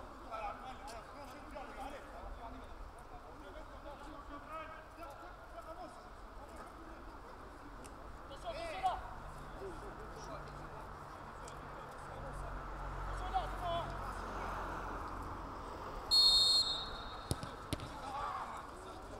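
Men shout and call to each other at a distance outdoors.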